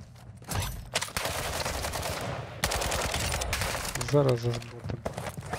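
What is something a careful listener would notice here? Rapid gunfire rattles at close range.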